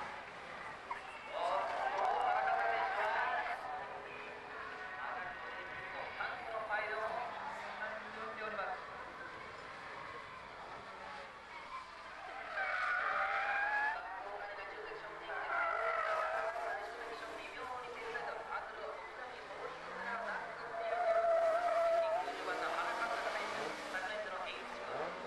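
A racing car engine revs hard and drops as the car drifts through bends.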